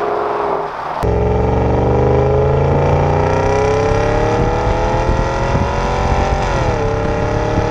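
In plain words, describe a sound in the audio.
A car exhaust roars loudly up close, rising in pitch through the gears.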